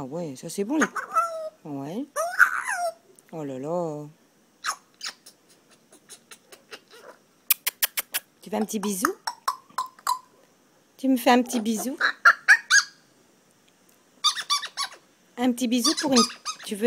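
A parrot chatters and mimics speech in bursts up close.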